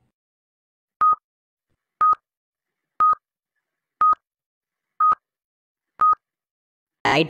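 A timer beeps once every second.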